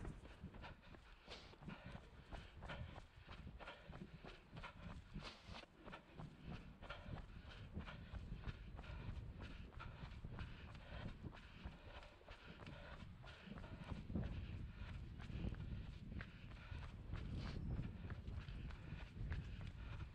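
Running footsteps slap quickly on pavement.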